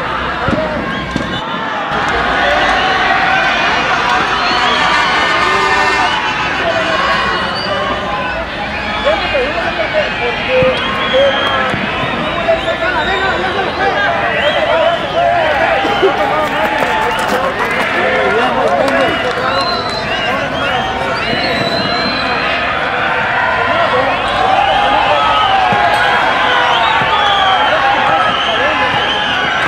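A large crowd of men and women chatters and cheers outdoors.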